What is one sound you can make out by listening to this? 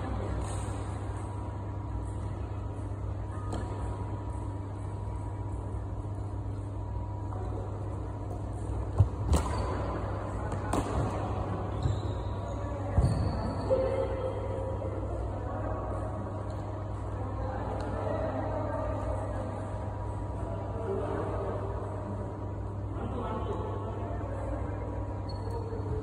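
Sneakers squeak and thud on a wooden court.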